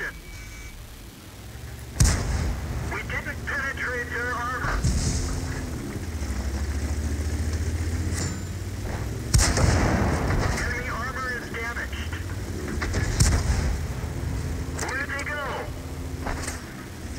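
A heavy tank engine rumbles.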